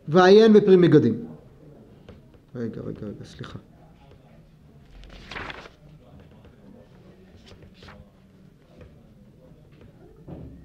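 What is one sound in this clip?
An elderly man speaks calmly into a microphone, in short bursts.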